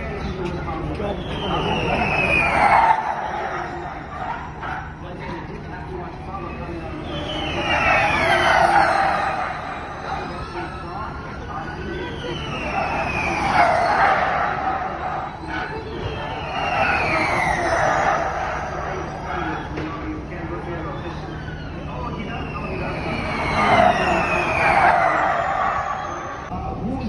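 Electric racing cars whine past at high speed one after another, each pitch falling as it goes by.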